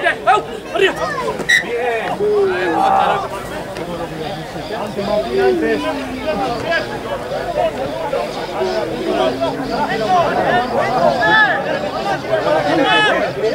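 Men on a field shout to each other.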